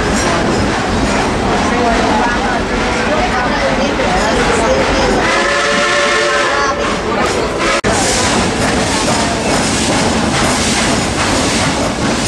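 A roller coaster train rattles and clatters loudly along a wooden track.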